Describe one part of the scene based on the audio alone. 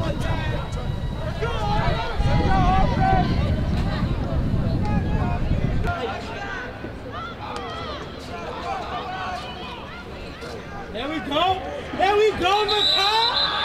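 A crowd of spectators chatters and shouts outdoors nearby.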